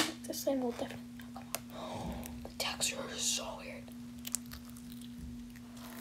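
Soft foamy dough squishes and crackles as fingers press into it.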